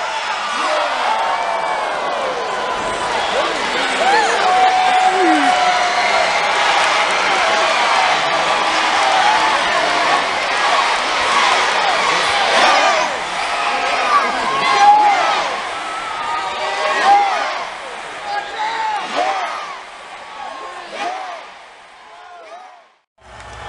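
A large crowd cheers and shouts loudly in a big echoing hall.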